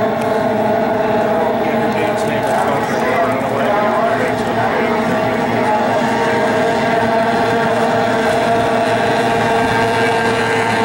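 Water sprays and splashes behind speeding boats.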